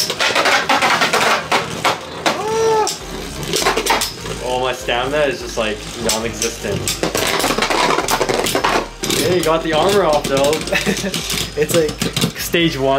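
Spinning tops clash with sharp clicks and knocks.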